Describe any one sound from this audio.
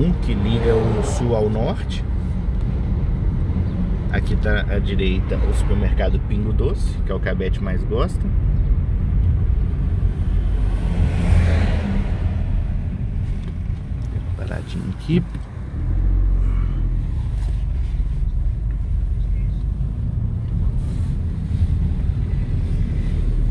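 A car engine hums low and steady with road rumble from inside the car.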